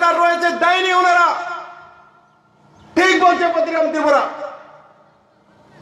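A man speaks forcefully through a loudspeaker, with a ringing echo outdoors.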